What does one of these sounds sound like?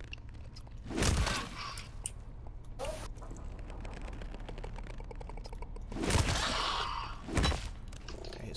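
A gun fires sharp shots.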